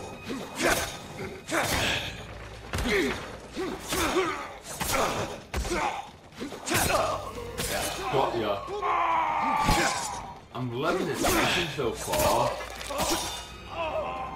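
Swords clash and clang sharply in quick bursts.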